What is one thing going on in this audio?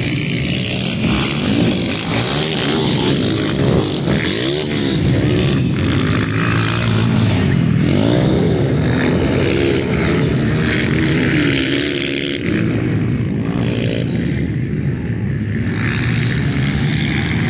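Motorcycle engines whine and rev nearby, rising and falling.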